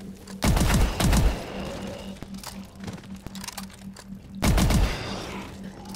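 Gunshots fire in loud bursts, echoing down a metal corridor.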